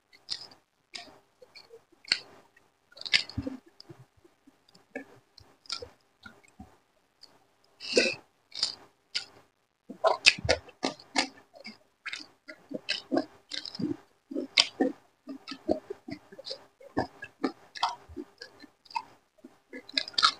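A man chews food loudly and wetly, close to a microphone.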